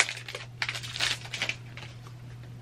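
A foil wrapper crinkles and tears as hands rip it open.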